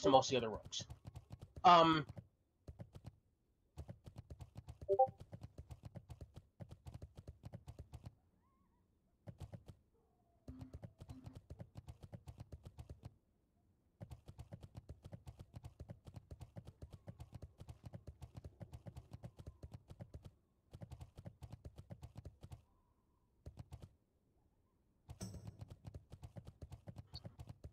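Hooves clop quickly and steadily on the ground.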